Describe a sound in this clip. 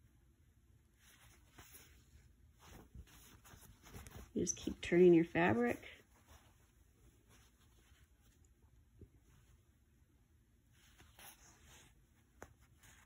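Cloth rustles softly as it is handled.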